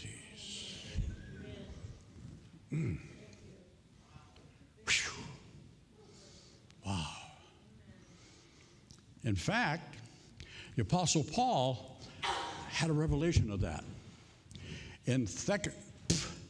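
An elderly man speaks with animation into a microphone, his voice echoing in a large hall.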